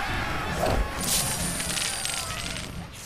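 Coins jingle with a sparkling chime.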